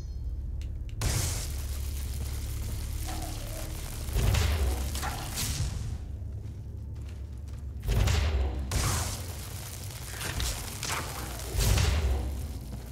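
A magic spell crackles and hisses in bursts.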